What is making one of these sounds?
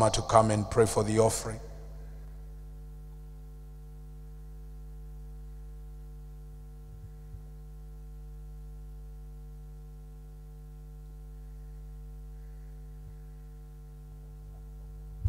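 A steady low hum runs from the loudspeakers.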